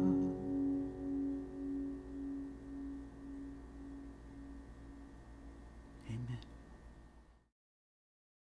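An acoustic guitar chord rings out and slowly fades away.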